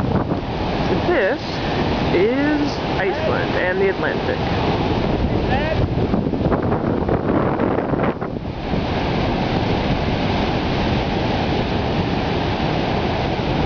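Heavy ocean surf crashes and roars.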